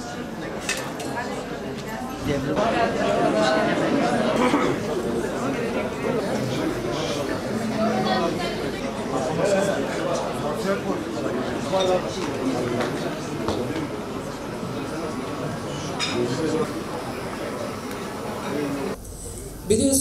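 A crowd of people chatters in a large room.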